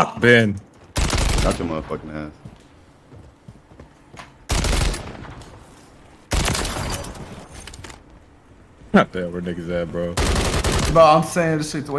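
Gunfire bursts out in loud, rapid volleys.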